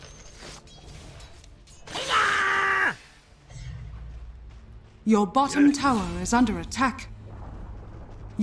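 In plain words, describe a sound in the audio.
Fantasy battle sounds clash and whoosh as spells are cast.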